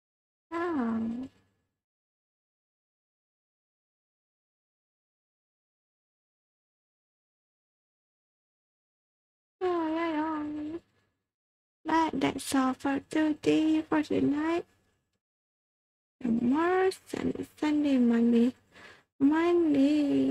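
A young woman speaks expressively into a close microphone, with pauses.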